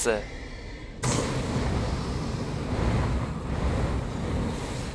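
A loud explosion booms and roars on.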